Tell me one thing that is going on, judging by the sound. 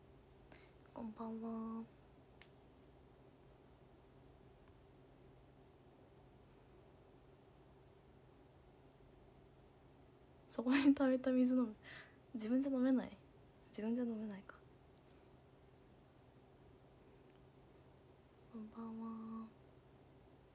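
A young woman speaks softly and close by in short bursts.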